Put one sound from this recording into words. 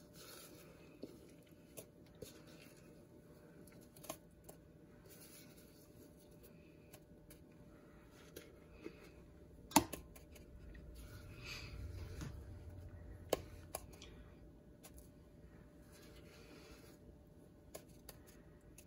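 A spatula scrapes and taps against a plastic tub.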